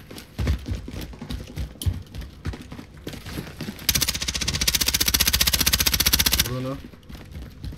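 Footsteps run quickly on a hard floor.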